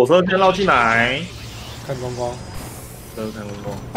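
Laser weapons fire and blasts crackle in a battle.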